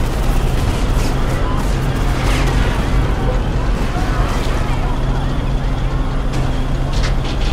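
A tank engine rumbles steadily as the tank rolls along.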